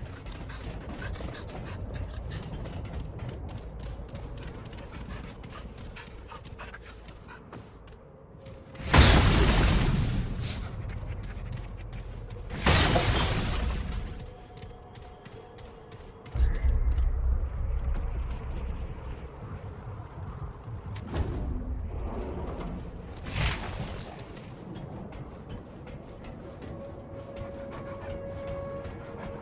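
Footsteps tread steadily on hard ground.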